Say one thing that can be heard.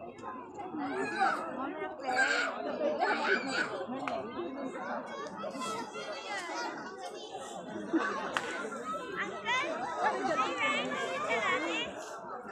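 Children squeal and laugh with excitement.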